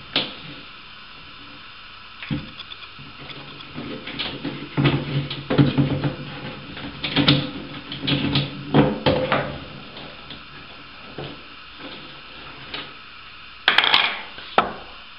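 A plastic cistern lid rattles and knocks as hands move it.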